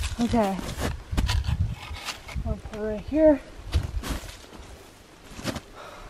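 Dry twigs snap and crackle in a woman's hands.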